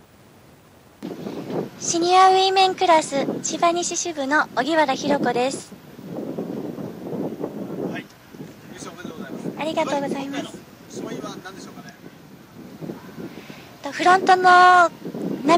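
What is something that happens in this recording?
A young woman speaks into a handheld microphone close by, calmly and cheerfully.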